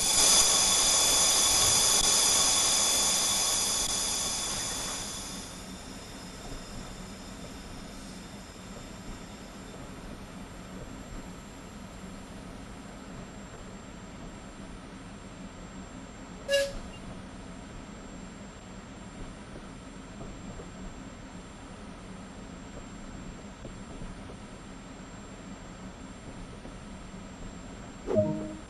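A train's motor hums steadily as it rolls along the track.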